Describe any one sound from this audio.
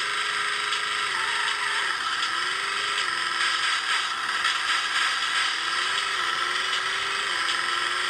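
A video game car engine drones and shifts pitch as it races.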